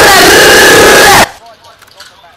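A rifle fires in a loud rapid burst.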